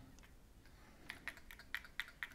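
Small metal parts click and tap as they are handled.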